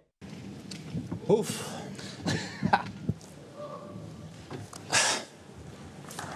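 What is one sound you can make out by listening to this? A man speaks with emotion through a microphone in a large hall.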